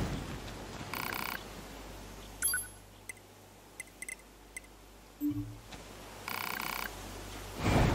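Menu selections click and chime.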